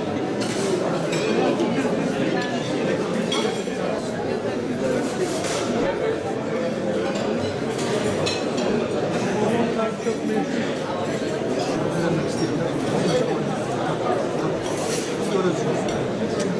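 A crowd of people murmurs and chatters in a room.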